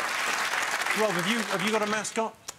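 A man speaks up over the audience.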